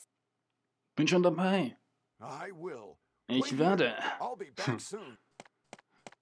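A man speaks firmly, calling out.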